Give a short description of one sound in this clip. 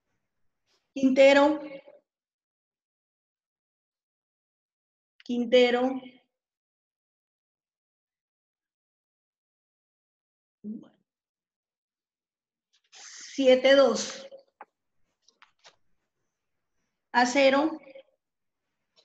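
A child speaks in short phrases over an online call.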